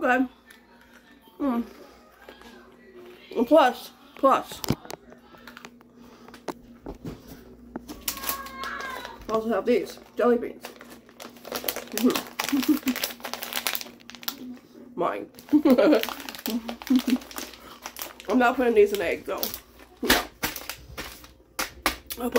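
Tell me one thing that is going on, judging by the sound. A woman chews and crunches food.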